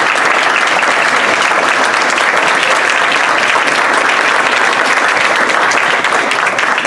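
A crowd applauds loudly, close by, in an echoing hall.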